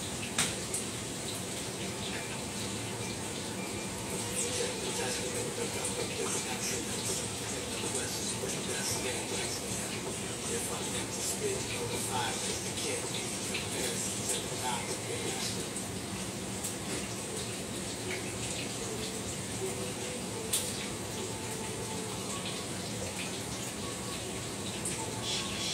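Food sizzles and crackles in a hot frying pan.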